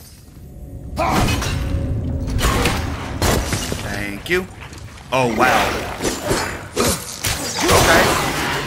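Blows and weapons clash in a loud fight.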